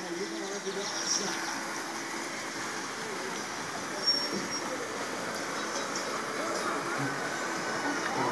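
Water runs and splashes down a slide outdoors.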